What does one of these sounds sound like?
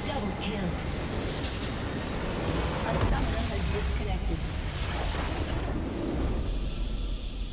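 Spell blasts and clashing weapons crash in a loud game battle.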